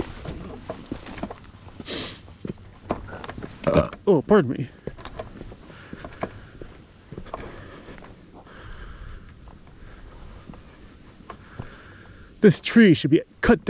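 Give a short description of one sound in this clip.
Shoes scuff and step on rock close by.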